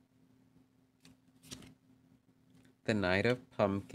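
A card slides and taps onto a table.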